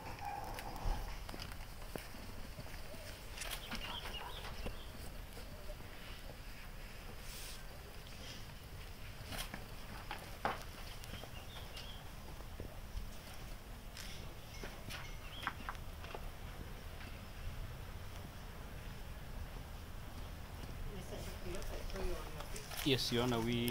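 A man talks calmly nearby, outdoors.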